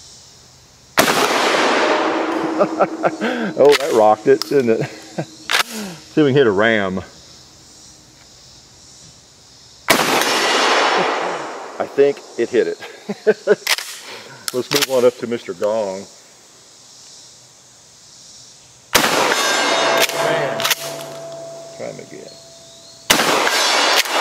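A shotgun fires loud, sharp blasts outdoors.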